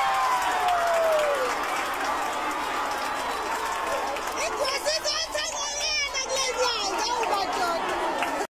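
A large crowd of children cheers and shouts loudly outdoors.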